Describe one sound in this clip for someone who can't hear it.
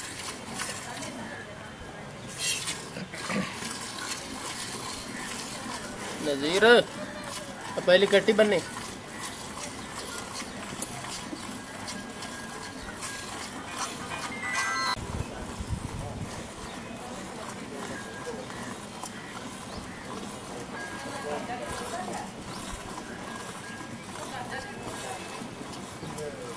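Milk squirts in quick, steady spurts into a pail.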